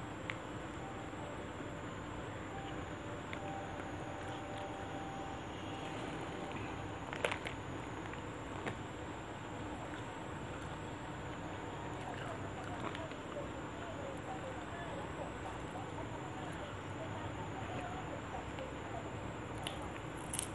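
Fresh leaves rustle and crinkle as they are handled.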